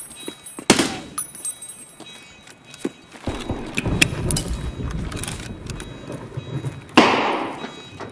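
A rifle fires a loud shot that echoes through a large hall.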